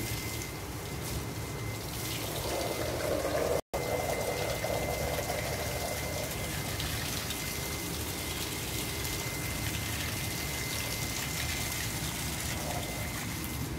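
Water sprays steadily from a garden hose.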